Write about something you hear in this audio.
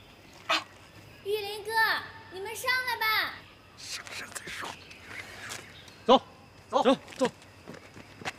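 A young man speaks with authority.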